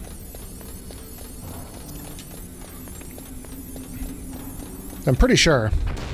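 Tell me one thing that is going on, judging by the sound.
Quick footsteps patter on hard stairs.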